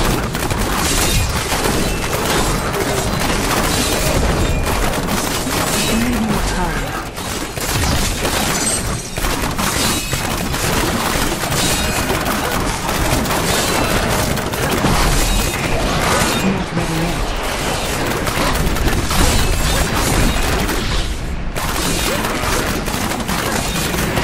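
Spell effects crackle and explode in rapid bursts during a game battle.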